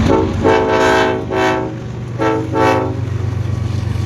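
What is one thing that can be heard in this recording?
A train horn blows loudly in several long blasts.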